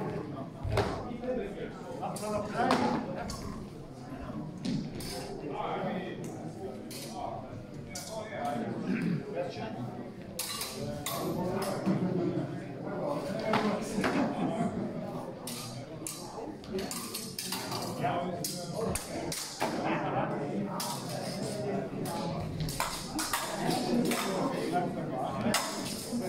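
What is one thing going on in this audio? Steel swords clash and clatter now and then in a large echoing hall.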